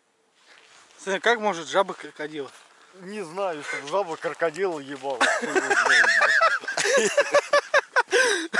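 A man talks with animation close by, outdoors.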